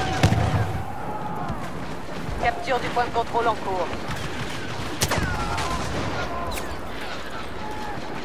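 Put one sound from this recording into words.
Laser blasters fire in quick bursts of high, falling zaps.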